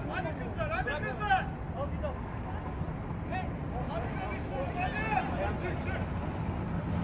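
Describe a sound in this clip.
Young men shout to each other during a football match outdoors.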